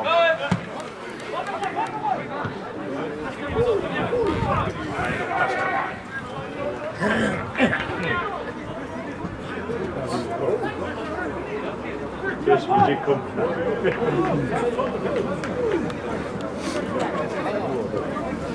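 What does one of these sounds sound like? A crowd murmurs and calls out outdoors.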